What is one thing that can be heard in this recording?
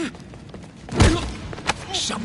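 A heavy blow lands with a dull thud.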